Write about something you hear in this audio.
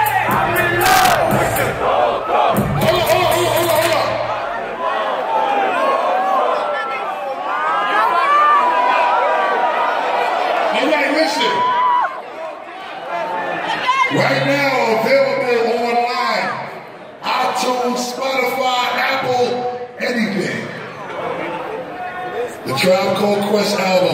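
A man raps into a microphone over loudspeakers in a large echoing hall.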